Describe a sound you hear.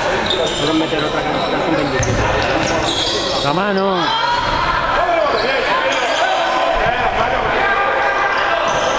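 Players shout and call out in a large echoing hall.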